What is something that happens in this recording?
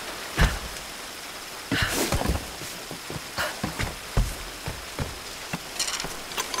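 Hands and feet thump and scrape against wooden planks during a climb.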